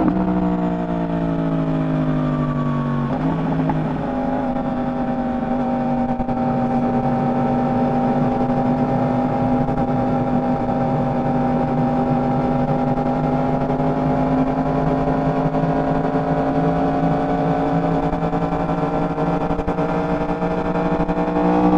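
A motorcycle engine hums steadily, dropping in pitch at a gear change and then slowly rising.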